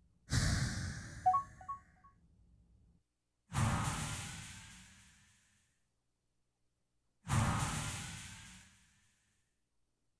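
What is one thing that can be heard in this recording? Deep whooshing game sound effects swell and fade away several times.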